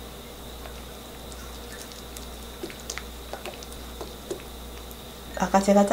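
A spatula scrapes and stirs thick sauce in a metal pan.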